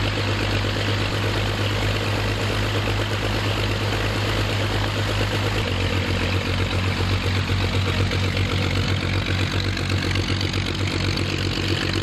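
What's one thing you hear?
A propeller engine idles with a loud, steady throbbing drone close by.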